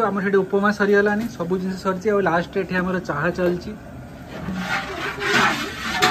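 Hot oil sizzles in a large pan.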